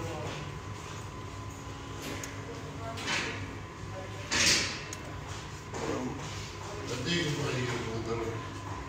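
An elderly man speaks slowly and quietly, close by.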